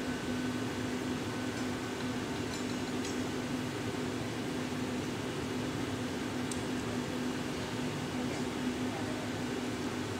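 Wet paper hisses and sizzles against hot glass.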